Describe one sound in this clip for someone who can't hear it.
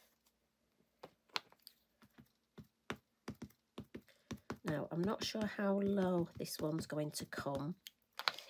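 A plastic case clicks and knocks against a hard surface.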